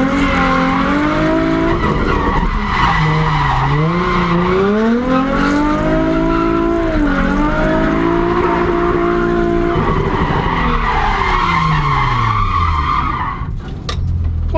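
A car engine roars loudly, revving up and down.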